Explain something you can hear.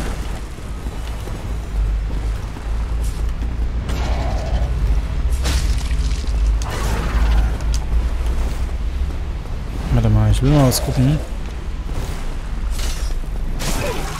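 A large beast roars.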